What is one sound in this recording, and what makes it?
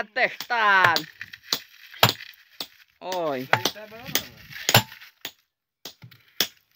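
A hammer strikes a steel chisel against stone with sharp ringing clinks.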